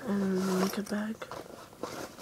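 A young woman speaks softly, close to a microphone.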